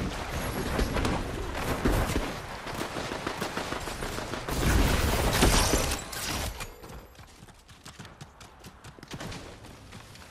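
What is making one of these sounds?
Footsteps run over grass and rock.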